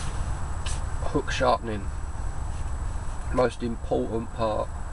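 A young man speaks quietly and close up.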